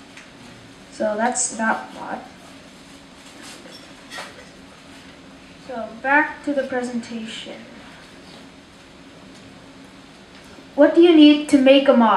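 A young boy speaks calmly into a microphone, in short bursts with pauses.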